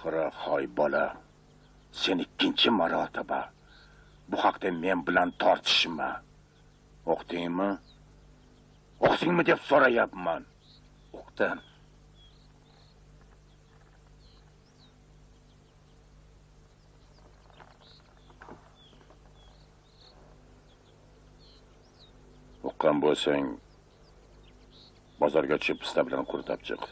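An elderly man speaks calmly and gently up close.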